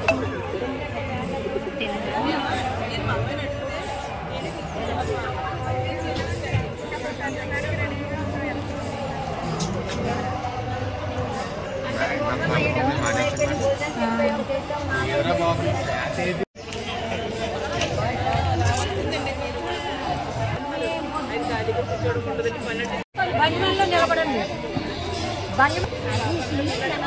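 Several women chatter and talk over one another outdoors.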